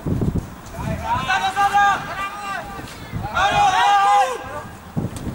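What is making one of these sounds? Young men shout loudly to each other across an open field.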